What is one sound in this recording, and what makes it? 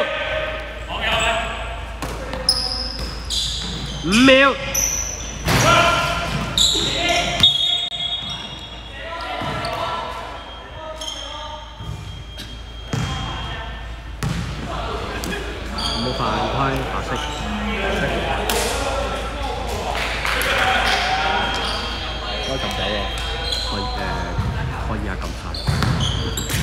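Young men shout to each other across the hall.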